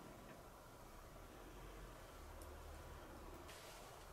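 Oil glugs softly out of a bottle into a pan.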